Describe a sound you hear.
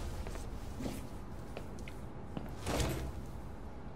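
Objects clatter softly as a hand rummages in a plastic basket.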